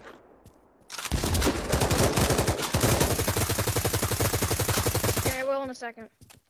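A light machine gun fires a long burst.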